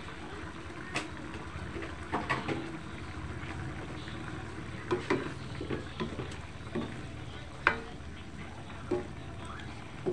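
A wooden spatula stirs and scrapes against a metal wok.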